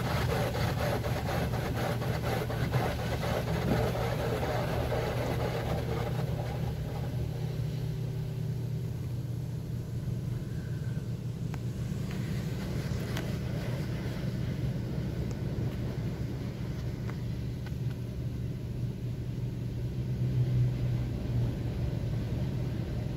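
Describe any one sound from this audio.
Car wash machinery hums low and steadily.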